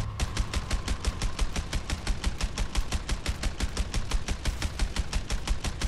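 A submachine gun fires in rapid, steady bursts.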